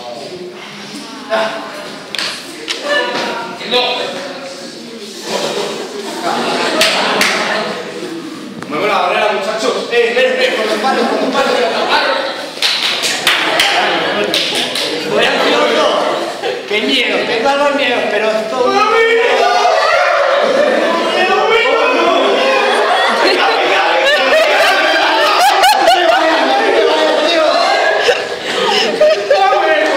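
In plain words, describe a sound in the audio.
A group of young people laugh and cheer nearby in an echoing room.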